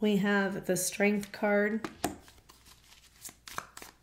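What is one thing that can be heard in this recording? A card is laid down on a table with a soft tap.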